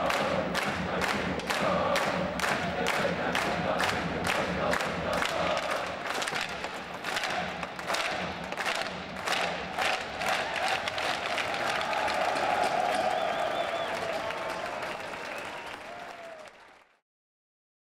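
A large crowd chants and cheers in an echoing arena.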